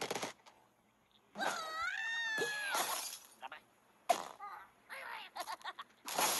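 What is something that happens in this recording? Glass panes shatter and tinkle.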